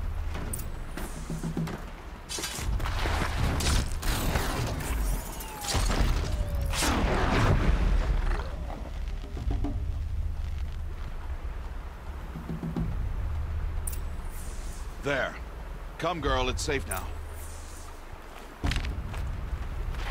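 Footsteps crunch on grass and rocks.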